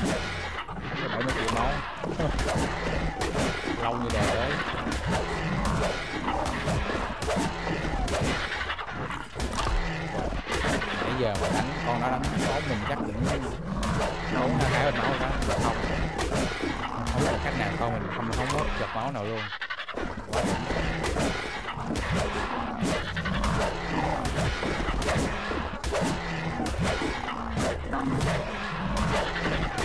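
Large wings flap heavily.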